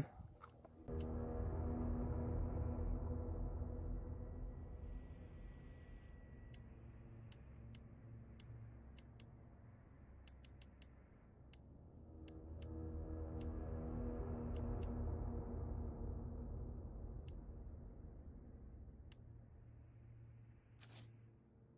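Soft menu clicks tick as a selection moves through a list.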